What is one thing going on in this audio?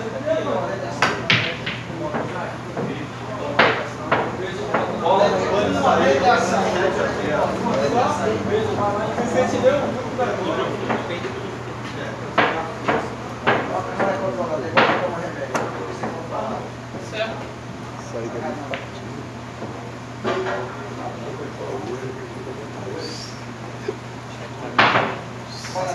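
Pool balls click sharply against each other.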